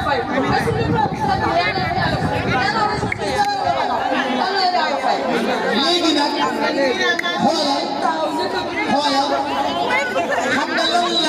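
A large crowd of women sings together nearby.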